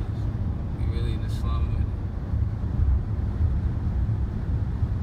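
A car engine hums steadily with low road rumble inside the car.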